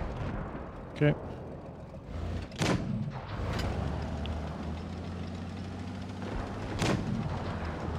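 Tank cannon shots boom from game audio.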